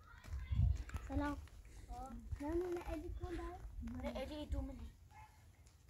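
Young children talk and call out close by.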